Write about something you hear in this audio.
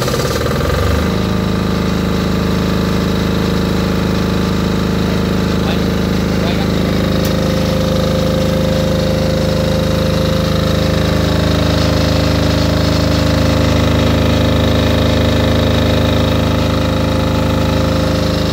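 A generator engine runs close by with a steady, loud drone.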